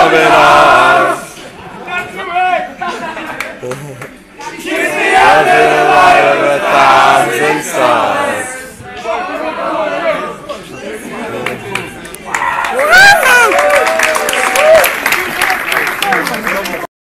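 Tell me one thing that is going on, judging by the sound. A crowd of young men sings and chants loudly close by, outdoors in a large open stadium.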